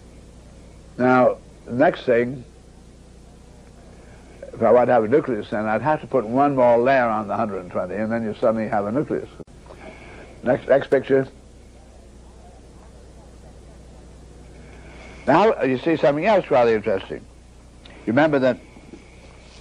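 An elderly man speaks calmly and deliberately into a microphone, with pauses.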